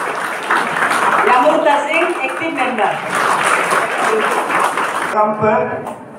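A woman speaks into a microphone over a loudspeaker in an echoing hall.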